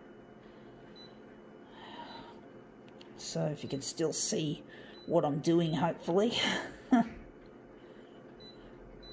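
A copier beeps softly when its touch panel is pressed.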